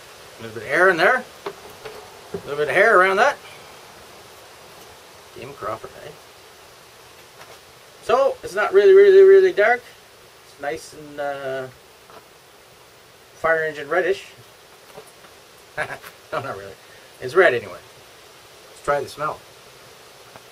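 A middle-aged man talks calmly, close by, with pauses.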